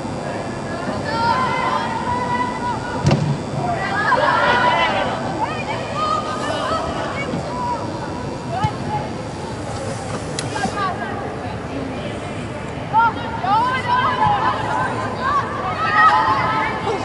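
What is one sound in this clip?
Young female players shout to each other in a large echoing hall.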